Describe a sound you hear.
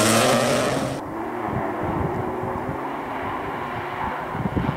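A rally car engine growls in the distance on a gravel road.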